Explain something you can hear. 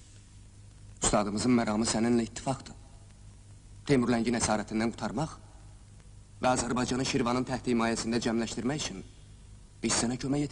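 A young man speaks close by, in a calm, earnest voice.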